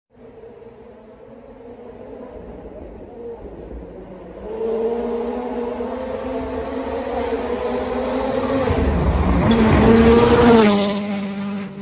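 A rally car's engine roars as the car approaches and speeds past close by.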